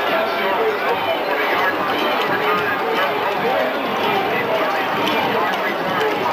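A large crowd cheers and chatters steadily outdoors.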